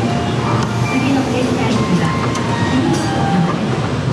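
Train doors slide open.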